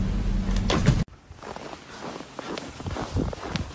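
A dog trudges through crunching snow.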